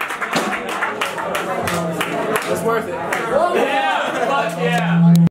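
An electric guitar plays distorted chords.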